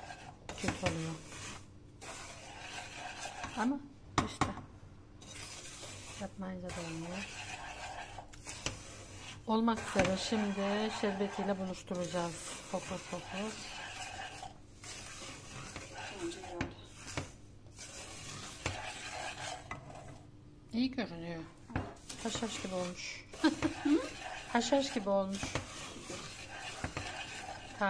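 A wooden spoon scrapes and stirs dry crumbs in a metal pan.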